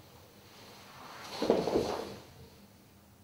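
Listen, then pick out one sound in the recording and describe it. A body thuds onto a wooden floor.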